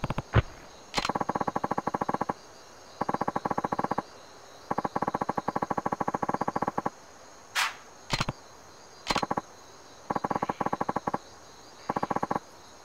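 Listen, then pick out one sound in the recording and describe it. Glowing energy blades buzz in rapid, rattling bursts.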